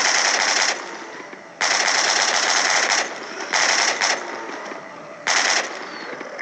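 A machine gun fires in rapid bursts.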